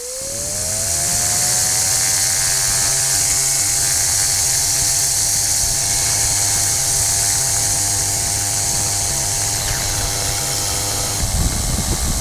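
A propeller engine revs up and drones steadily.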